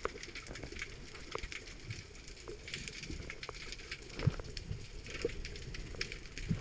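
Underwater clicks and crackles sound close all around.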